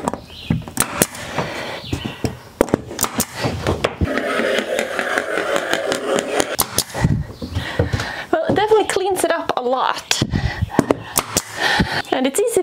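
Sharp taps and knocks sound on wooden boards close by.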